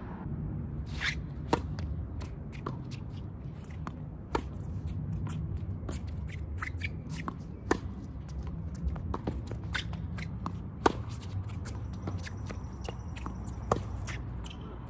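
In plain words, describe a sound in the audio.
Tennis balls are struck sharply with rackets in a rally.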